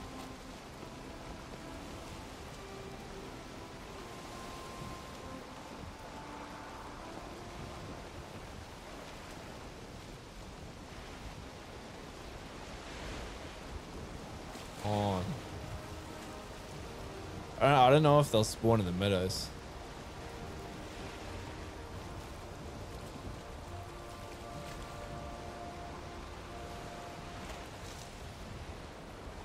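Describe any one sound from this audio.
Stormy sea waves rush and churn steadily.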